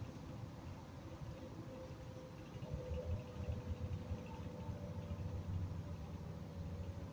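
A bus rattles and creaks as it rolls along.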